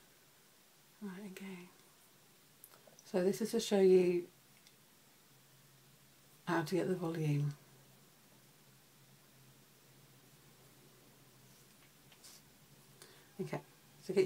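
A young woman speaks softly and close by, in short bursts.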